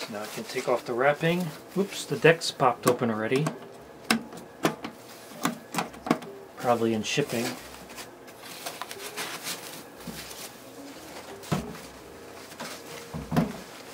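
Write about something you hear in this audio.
Plastic foam wrapping rustles and crinkles close by.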